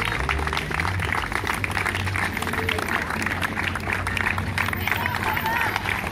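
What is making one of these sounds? A crowd applauds and cheers outdoors.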